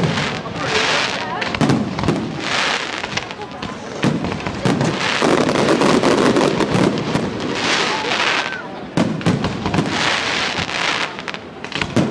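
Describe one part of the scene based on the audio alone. Fireworks hiss and crackle as they shoot up.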